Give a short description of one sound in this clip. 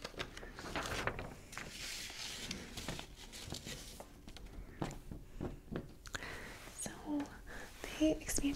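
A young woman speaks calmly and close into a microphone.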